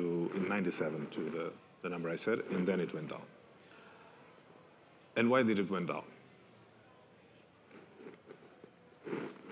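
A man speaks into a microphone over loudspeakers in a large room, pausing between phrases.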